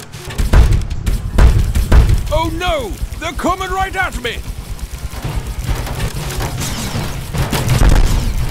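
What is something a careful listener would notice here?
A heavy mechanical robot stomps with deep, booming thuds.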